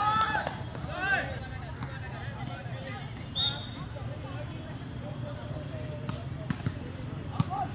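Players shout to each other outdoors.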